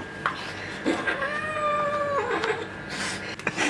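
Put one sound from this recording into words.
A kitten meows.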